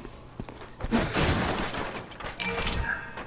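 Wooden crates smash and splinter apart.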